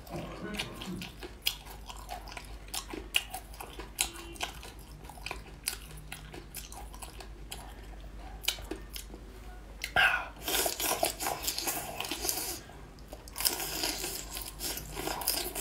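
A young man chews and slurps food close up, with wet smacking sounds.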